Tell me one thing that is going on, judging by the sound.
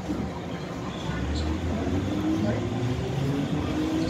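A train motor whines, rising in pitch as the train pulls away.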